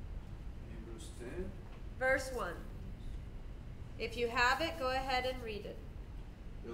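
A woman speaks close by, with animation.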